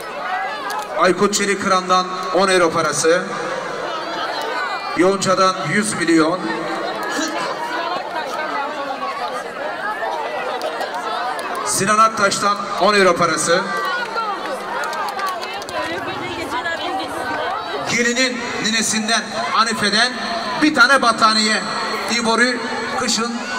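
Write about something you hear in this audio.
An older man speaks loudly through a microphone and loudspeakers.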